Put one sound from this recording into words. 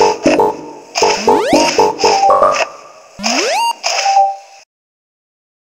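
Quick electronic game blips and rising chirps play.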